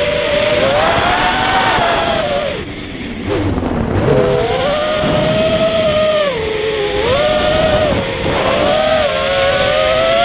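Wind rushes past in the open air.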